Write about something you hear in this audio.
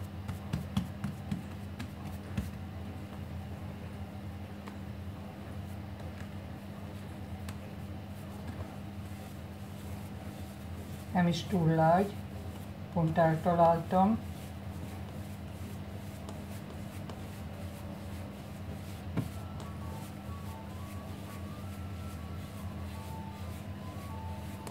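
Hands knead and slap soft dough.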